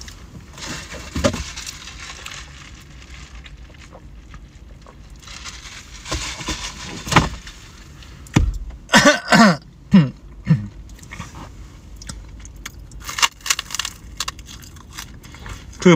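A man chews and munches on food.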